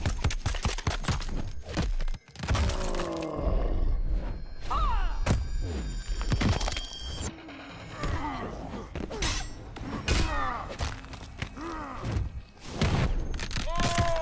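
Bones crack and splinter wetly.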